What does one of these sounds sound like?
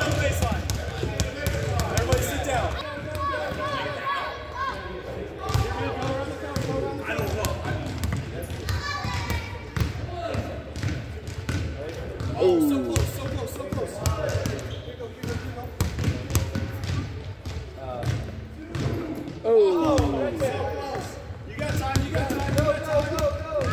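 Basketballs bounce on a wooden floor in a large echoing gym.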